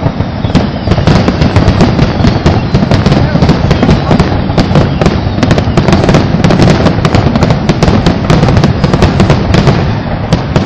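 Fireworks boom with deep rumbling blasts.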